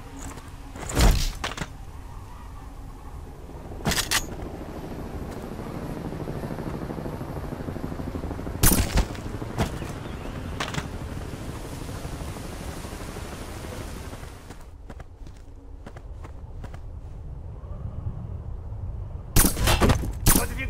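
A silenced pistol fires sharp shots.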